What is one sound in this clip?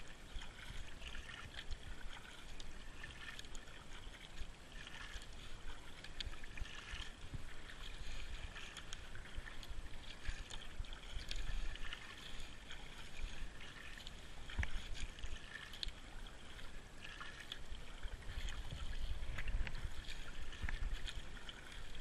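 A paddle splashes and dips into water in a steady rhythm.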